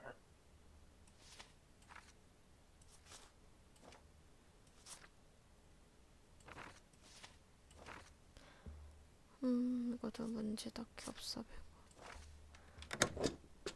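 Papers slide and rustle in short bursts.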